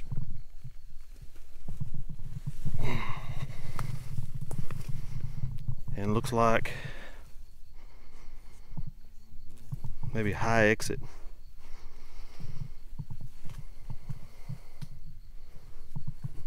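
An animal rustles and scrapes through dry grass close by.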